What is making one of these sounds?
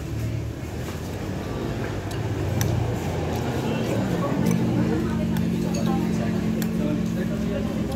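A spoon clinks against a ceramic bowl.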